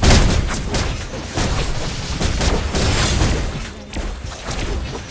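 Fantasy battle sound effects clash, whoosh and crackle in quick bursts.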